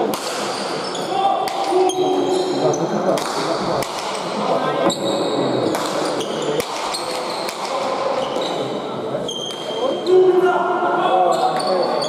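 A ball smacks sharply against a wall and echoes through a large hall.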